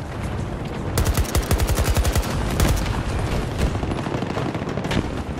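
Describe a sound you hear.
Rapid bursts of rifle fire crack loudly.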